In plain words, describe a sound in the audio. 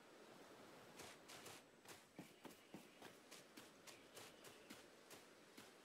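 Quick footsteps run across grass.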